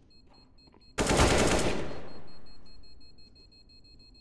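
A rifle fires a burst of loud gunshots.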